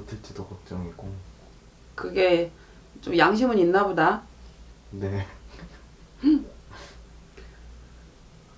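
A middle-aged woman speaks calmly and expressively close to a microphone.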